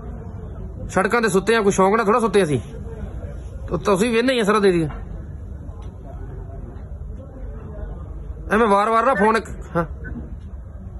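A man speaks close by in short bursts, with pauses between.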